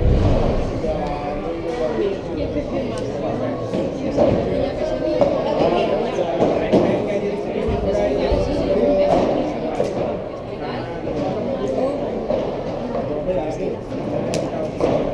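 Young men talk and call out across the court.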